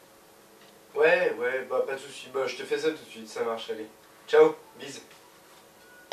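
A young man talks on a phone close by, calmly.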